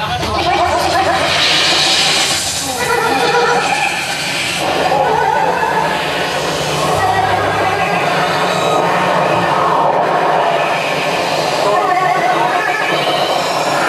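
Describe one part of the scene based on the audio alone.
Drums pound fast and hard.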